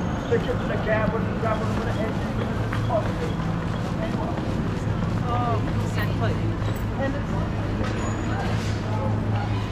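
Busy city street noise hums steadily outdoors.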